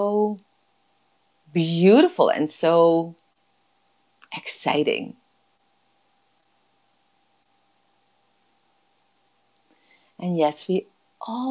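A woman speaks expressively in short bursts, close to a microphone, heard over an online call.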